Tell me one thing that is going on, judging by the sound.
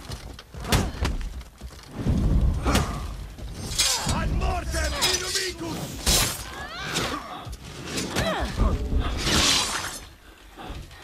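Swords clash and ring with sharp metallic strikes.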